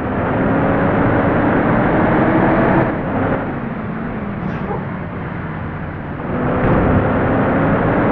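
A car engine hums steadily, rising and falling with speed.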